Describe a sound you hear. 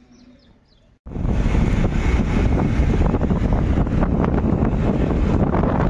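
Wind buffets the microphone loudly.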